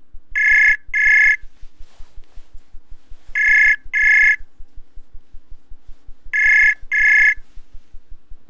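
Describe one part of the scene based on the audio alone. A call tone rings in repeated double bursts through a speaker.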